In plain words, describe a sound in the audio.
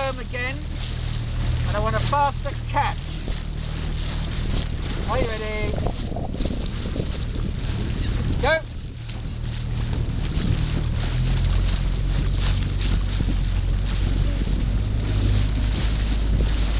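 Oars splash and dip in the water in a steady rhythm.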